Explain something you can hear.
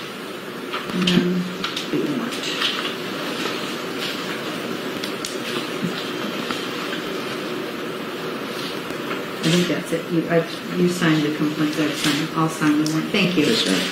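A woman speaks quietly at close range.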